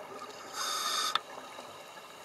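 Air bubbles from a diver's breathing gear burble and hiss underwater.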